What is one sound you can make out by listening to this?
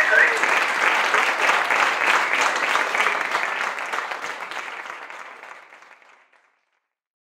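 An audience claps, then the applause fades away.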